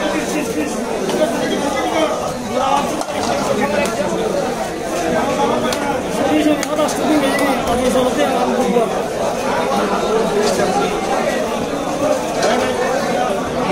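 A heavy knife chops through fish onto a wooden block with sharp thuds.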